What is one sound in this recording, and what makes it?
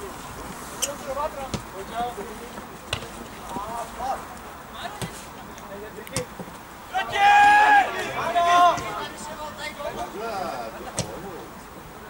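A football is kicked with sharp thumps.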